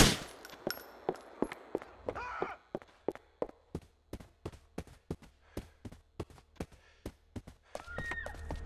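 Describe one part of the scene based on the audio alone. Footsteps run quickly across a floor.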